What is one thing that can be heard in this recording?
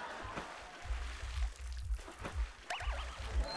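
Water pours and splashes onto a plastic hood.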